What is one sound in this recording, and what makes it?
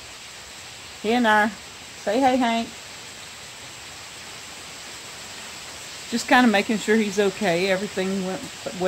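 A woman speaks close by, calmly.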